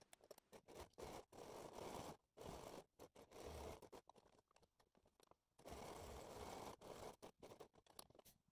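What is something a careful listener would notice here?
A sewing machine whirs in bursts as it stitches.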